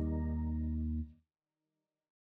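An acoustic guitar is strummed, ringing out.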